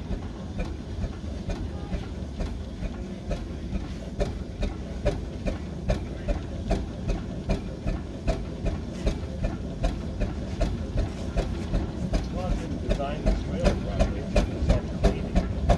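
A steam engine chuffs in a steady rhythm that gradually quickens.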